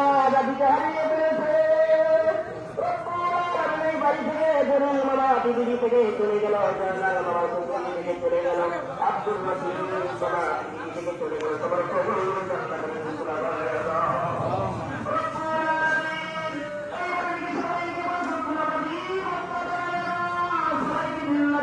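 A man chants a prayer in a long, melodic voice through a loudspeaker.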